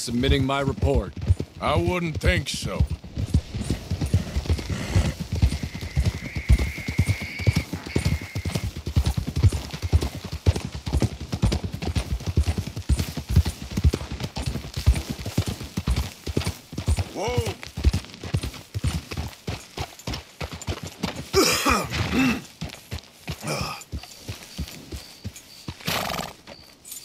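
Horse hooves clop steadily on a dirt track.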